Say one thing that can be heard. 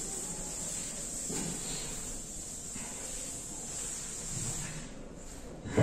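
A duster rubs across a blackboard.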